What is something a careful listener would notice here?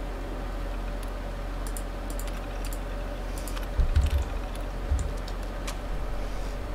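Keys on an old computer terminal click in quick bursts.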